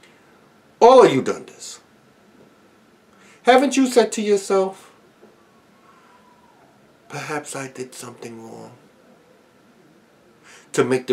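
A middle-aged man speaks calmly and close up, in short bursts with pauses.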